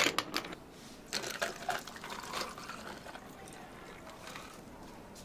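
Water pours and trickles over ice.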